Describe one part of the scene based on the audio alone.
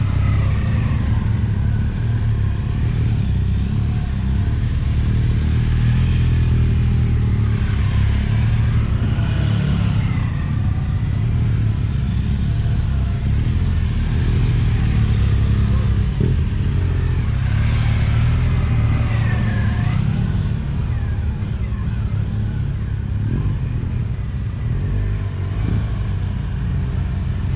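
Large touring motorcycles circle close by at low speed, engines rising and falling.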